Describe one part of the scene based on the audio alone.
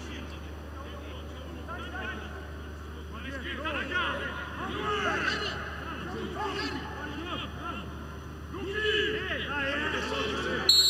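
Men shout to each other across a large, echoing empty stadium.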